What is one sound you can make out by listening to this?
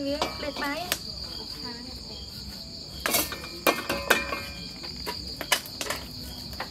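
A metal pot clatters onto a stove.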